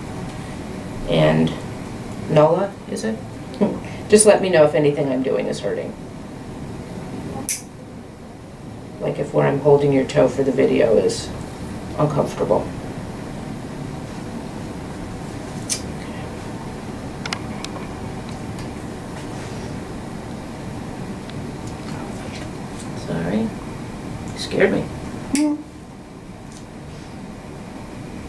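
Nail clippers snip through a toenail with sharp clicks.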